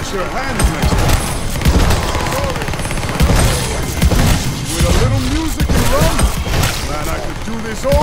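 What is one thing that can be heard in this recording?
Rapid gunfire blasts in quick bursts.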